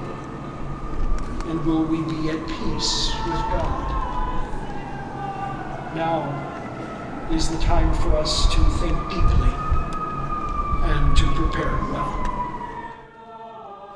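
A crowd of people murmurs quietly outdoors.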